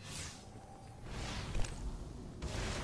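A vehicle materialises with a sudden whoosh.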